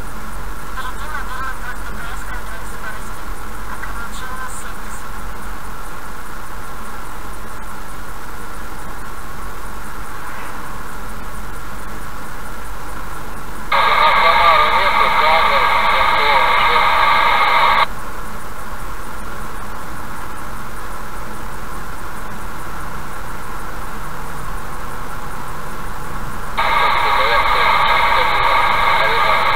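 A car drives steadily along a highway, its engine and tyres humming.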